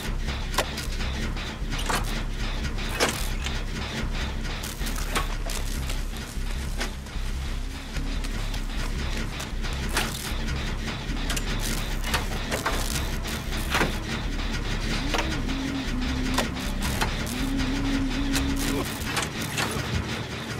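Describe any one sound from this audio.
Metal parts clank and rattle as an engine is worked on.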